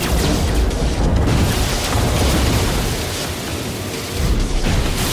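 A spacecraft engine rumbles steadily.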